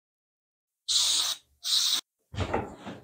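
An aerosol can sprays in short hissing bursts.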